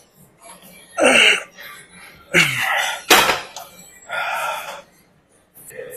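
A young man grunts and strains loudly with effort.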